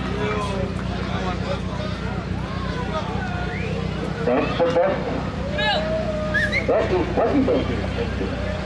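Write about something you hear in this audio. A crowd chatters.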